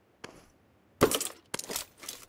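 A sniper rifle fires a single sharp shot.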